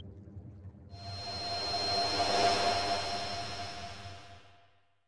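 A winged creature takes off with a loud rushing whoosh that swells and fades.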